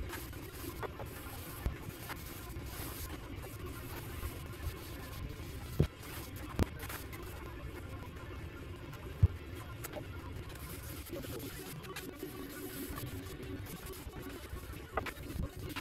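A cloth rubs softly over a wooden board.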